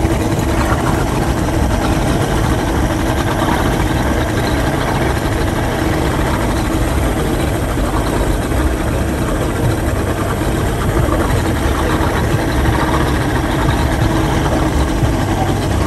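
A boat engine roars steadily close by.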